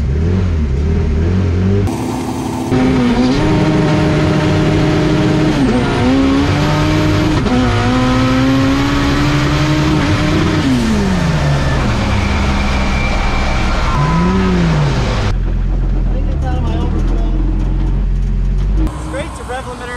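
A race car engine roars loudly and revs up and down.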